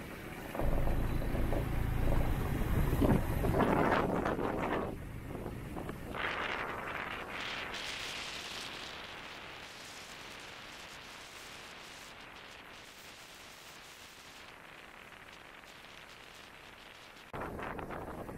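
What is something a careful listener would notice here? Tyres crunch over a gravel track.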